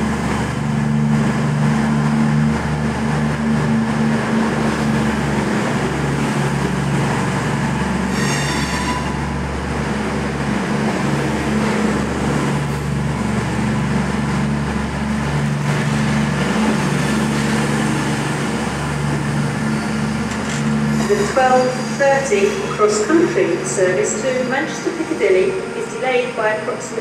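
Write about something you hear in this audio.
A diesel multiple-unit train's underfloor engines throb as it pulls away.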